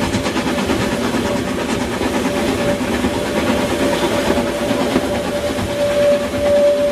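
A steam whistle sounds steadily.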